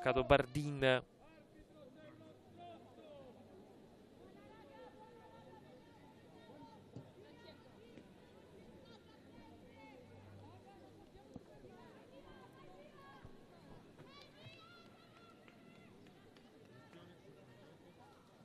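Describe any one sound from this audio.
Young women call out faintly on an open outdoor pitch.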